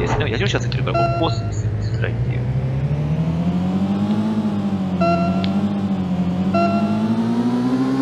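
Electronic game tones beep in short bursts.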